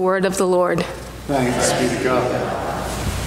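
A woman speaks into a microphone in an echoing hall.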